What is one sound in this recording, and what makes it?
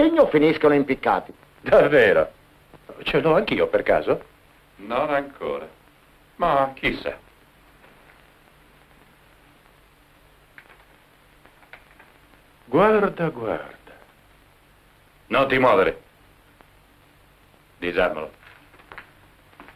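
An elderly man speaks in reply.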